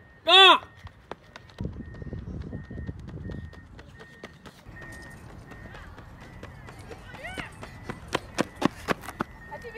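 Footsteps run across pavement.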